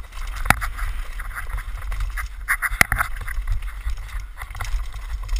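A downhill mountain bike rattles and clanks over bumps.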